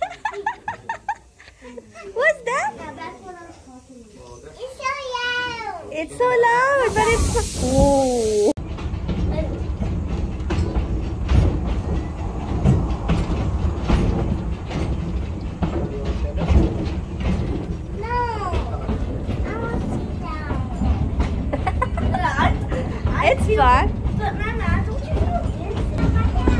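Children talk and call out excitedly close by.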